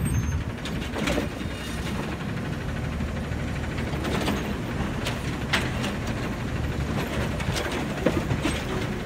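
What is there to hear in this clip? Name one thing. A garbage truck's diesel engine idles with a deep rumble.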